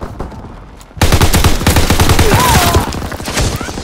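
A machine gun fires rapid bursts at close range.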